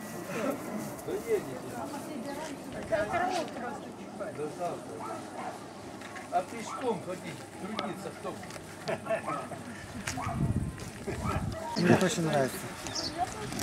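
Several people murmur and talk quietly in the distance outdoors.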